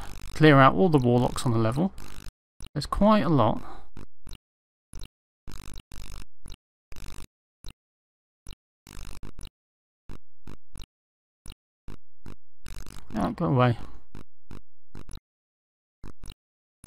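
Sharp electronic clicks tick on and off.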